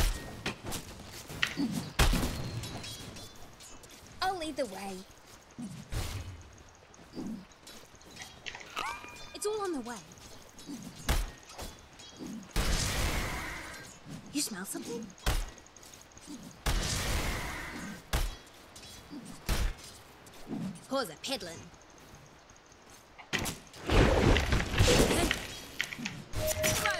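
Fantasy battle sound effects from a video game whoosh and clash in bursts.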